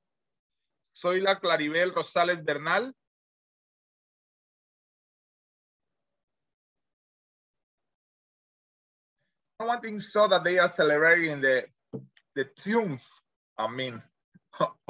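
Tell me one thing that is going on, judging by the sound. A man speaks with animation over an online call, in short bursts with pauses.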